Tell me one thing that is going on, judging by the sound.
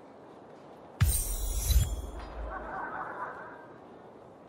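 A bright magical shimmer sounds with a deep whoosh.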